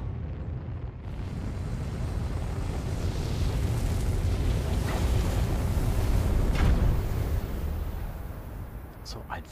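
Rocket thrusters roar loudly, building up and then dying away.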